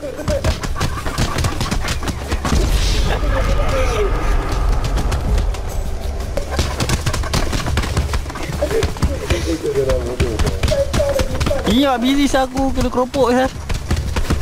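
Fists thud as men brawl in a fistfight.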